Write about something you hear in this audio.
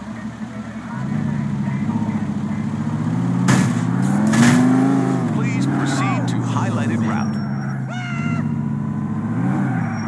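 A car engine hums and revs as the car drives off.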